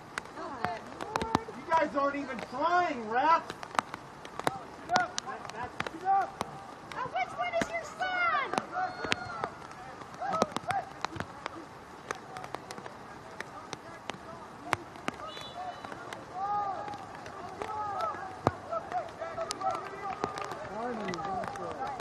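Young players shout and call to one another across an open field, some distance away.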